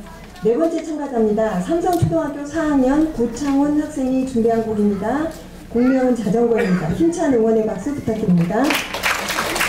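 A woman speaks through a microphone over loudspeakers in a large echoing hall.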